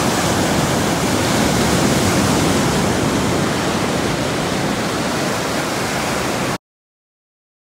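Waves wash up onto a beach with a steady rush.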